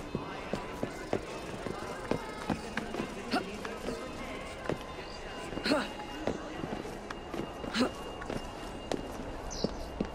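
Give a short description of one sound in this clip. Hands and boots scrape and thud on a stone wall while climbing.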